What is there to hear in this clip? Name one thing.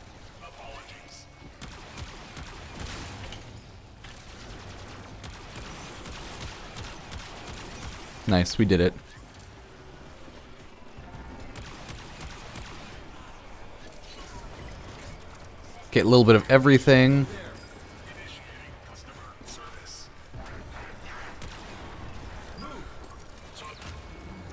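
Gunfire crackles in a game.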